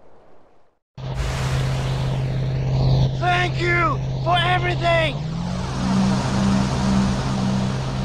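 A small boat's motor drones steadily.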